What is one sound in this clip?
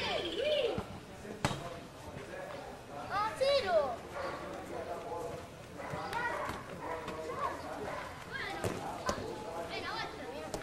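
Children shout and call out excitedly outdoors.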